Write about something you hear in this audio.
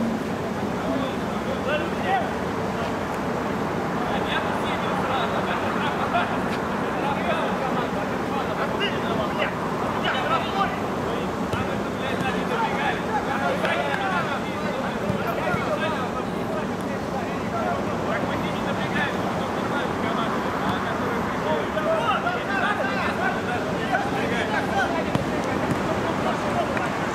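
Spectators chatter and call out nearby outdoors.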